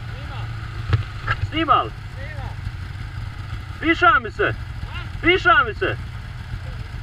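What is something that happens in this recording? A man talks nearby, raising his voice over the engine.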